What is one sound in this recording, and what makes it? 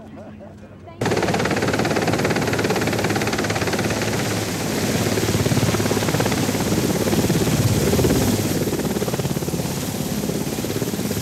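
A helicopter's rotor blades thump loudly close by.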